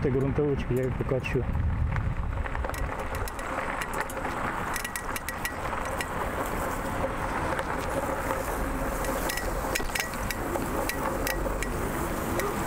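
A bicycle rattles and clicks over a rough path.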